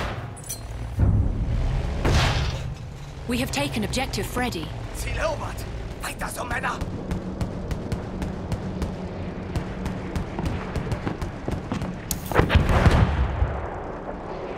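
Explosions boom in the distance.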